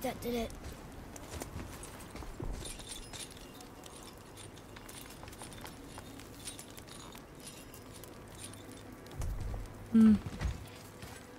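A young woman speaks briefly and calmly into a microphone.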